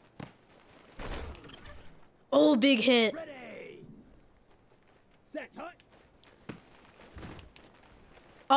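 Football players collide with a heavy thud.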